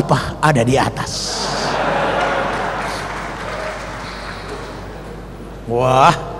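A large audience laughs together.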